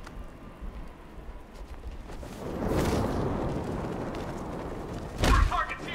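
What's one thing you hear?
Wind rushes past during a glide.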